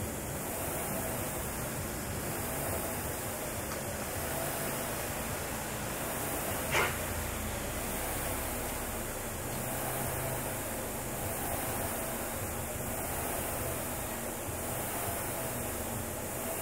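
A fitness machine's flywheel whirs and surges with each pull.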